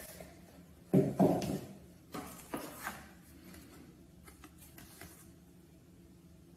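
A paper card rustles as hands pick it up.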